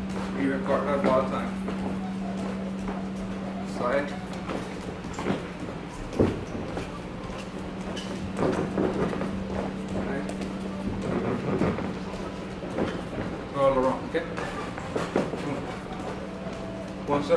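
Feet shuffle and thump on a padded ring floor.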